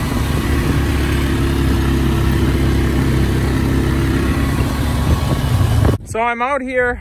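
A quad bike engine hums and rattles.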